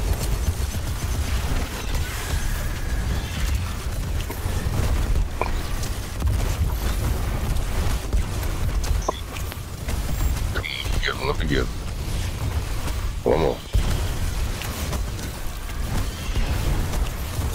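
Explosions boom and rumble in a video game.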